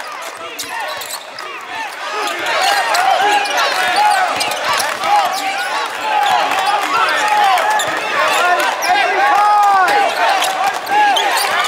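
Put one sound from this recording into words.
A basketball bounces on the court as it is dribbled.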